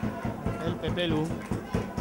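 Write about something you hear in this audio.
A football is kicked on a grass pitch.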